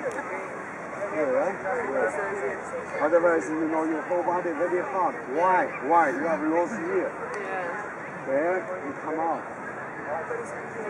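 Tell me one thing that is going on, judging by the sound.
Young women chat and laugh nearby.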